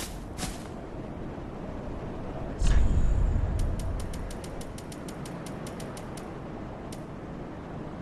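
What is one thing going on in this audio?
Soft menu clicks tick in quick succession.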